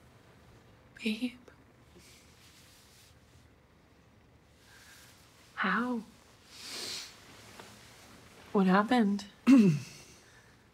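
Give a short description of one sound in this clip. A young man speaks softly nearby.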